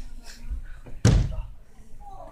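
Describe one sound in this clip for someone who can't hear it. A body slams onto a mat with a loud thud in an echoing hall.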